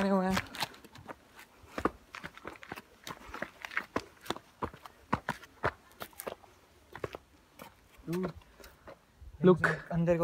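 Footsteps crunch on gravel and stone steps.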